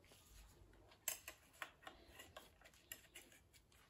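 Metal engine parts clink and rattle as they are handled.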